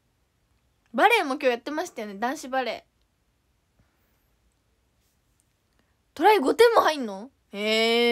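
A young woman speaks close to a microphone in short, lively bursts.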